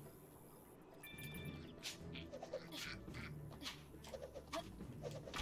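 Cartoonish game sound effects chime and thump.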